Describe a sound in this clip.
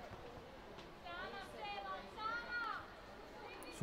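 Women players call out to each other across an open outdoor pitch.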